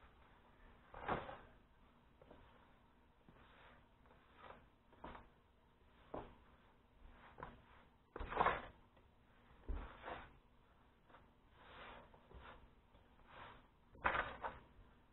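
Hands pat and toss pieces of chicken in a dish of dry coating, with soft rustling and dull taps.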